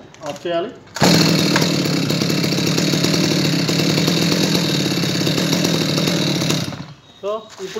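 A chainsaw engine runs loudly and steadily.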